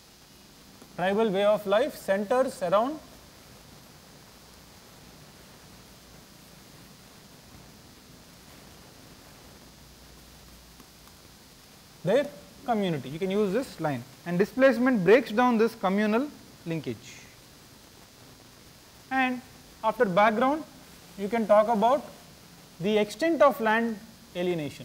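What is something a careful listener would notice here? A man speaks calmly, as if lecturing, close by.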